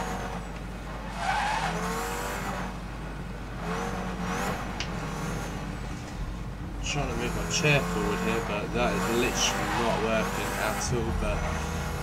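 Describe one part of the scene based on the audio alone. A car engine hums and revs as the car speeds up.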